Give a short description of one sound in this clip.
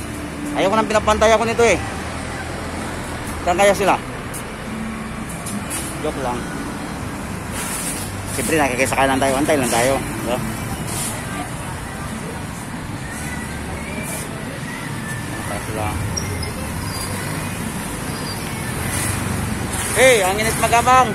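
Motorbikes and cars pass along a road outdoors.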